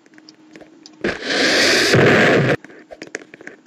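A bomb explodes with a loud blast.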